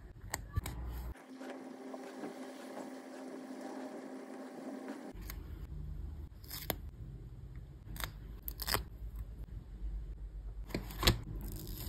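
Paper rustles and taps as it is handled.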